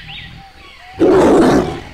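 A jaguar gives a loud, rough yawning growl.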